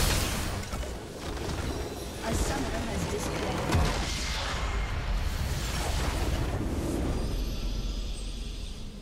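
Game spell effects crash and whoosh in a hectic fight.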